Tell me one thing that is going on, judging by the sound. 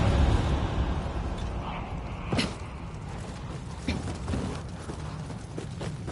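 A sword slashes and clangs.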